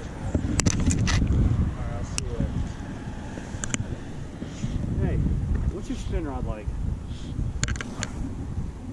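A fishing reel clicks as line is pulled off.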